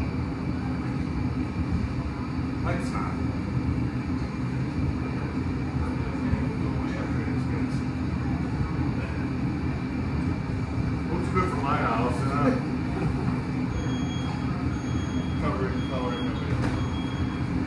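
A furnace roars steadily.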